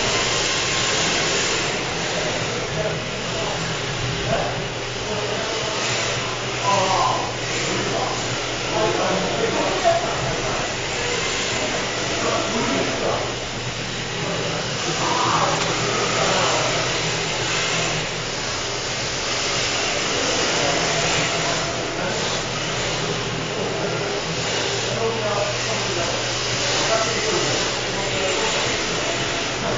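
Small electric motors whine as remote-control cars race around.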